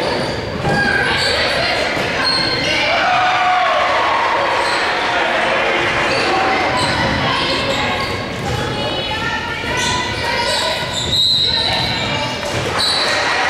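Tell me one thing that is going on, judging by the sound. A crowd of women and girls talk and call out nearby, echoing in a large hall.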